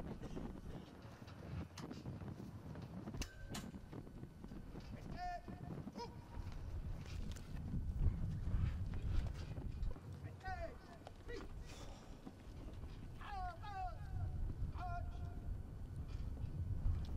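Wind blows in gusts outdoors, rumbling against the microphone.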